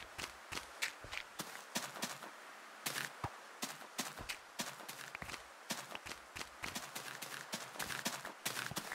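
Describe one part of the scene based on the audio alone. A video game character digs dirt blocks with a shovel, with crunching thuds.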